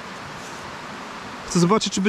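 A gloved hand scrapes through loose soil.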